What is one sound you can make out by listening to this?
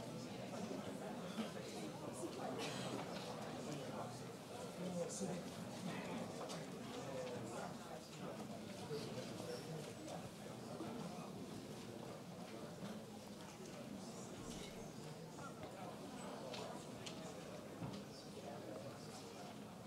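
A crowd murmurs quietly.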